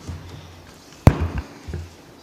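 A microphone thumps as a man handles it.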